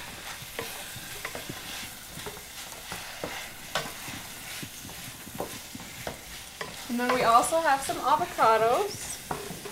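A wooden spatula scrapes and stirs food in a frying pan.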